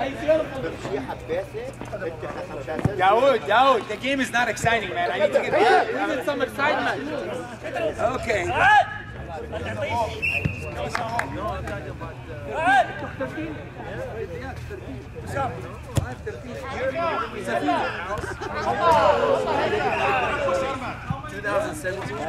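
Men shout and call out across an outdoor pitch.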